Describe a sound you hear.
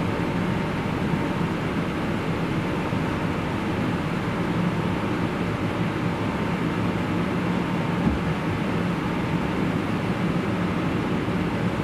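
A train's engine rumbles steadily from inside a carriage.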